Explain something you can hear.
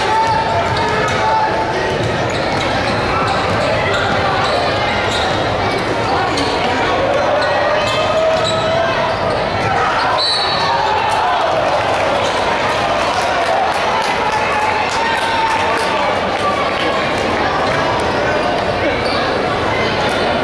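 A crowd cheers and shouts throughout a large echoing arena.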